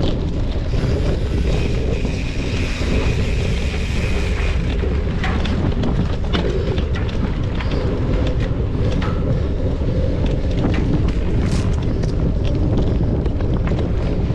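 Bicycle tyres crunch over a dirt trail.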